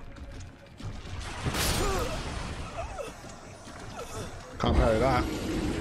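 Heavy thuds and crashes sound as a giant creature attacks.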